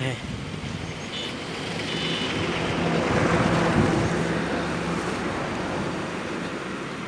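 A motorcycle passes on the road below.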